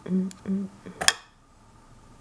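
A metal tea infuser snaps shut with a click.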